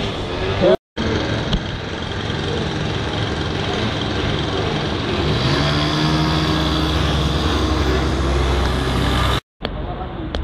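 A motorcycle engine roars and revs loudly as it passes close by.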